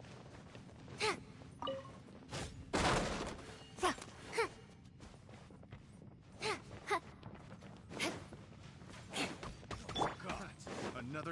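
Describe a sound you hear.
A sword swings with a sharp whoosh.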